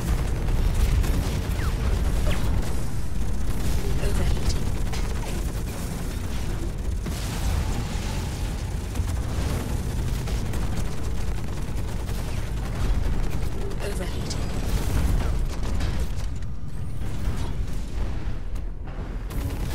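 A large machine rumbles low and steadily.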